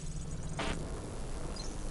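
Sparks crackle and burst in an explosion.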